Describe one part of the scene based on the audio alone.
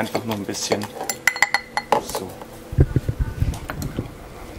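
A muddler thumps and grinds in the bottom of a glass.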